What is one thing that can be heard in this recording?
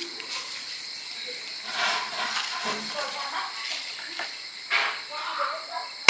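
A straw stirs and rattles ice in a plastic cup.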